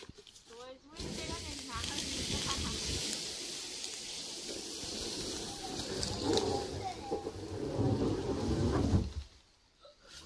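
A plank scrapes and knocks against dry leaves and wood.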